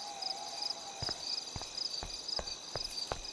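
Footsteps tap on a paved path at a walking pace.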